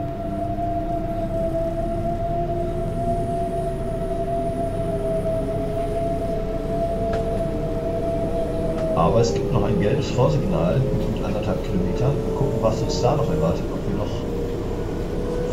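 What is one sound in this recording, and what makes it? An electric train motor whines, rising slowly in pitch as the train speeds up.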